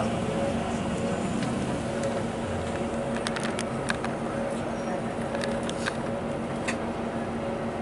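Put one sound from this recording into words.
City traffic rumbles along a busy street.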